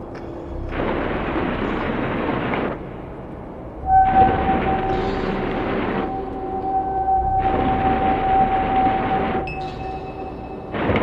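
Electronic equipment plays bursts of rushing noise that swell and cut off sharply.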